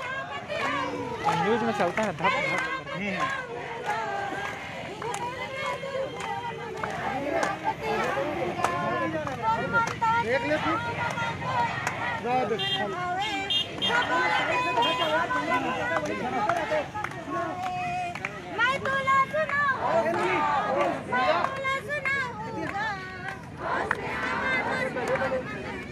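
A crowd of men and women chants and talks outdoors.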